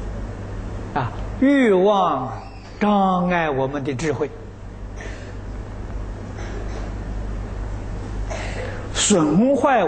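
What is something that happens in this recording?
An elderly man speaks calmly and slowly into a microphone.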